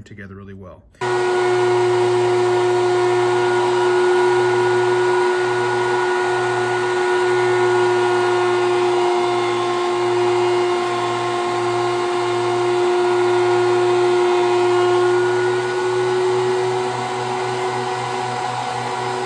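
A power planer runs with a loud, steady whine.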